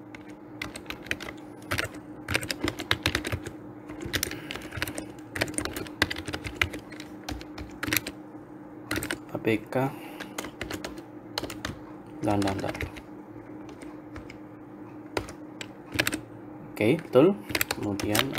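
Keys clatter on a computer keyboard in quick bursts.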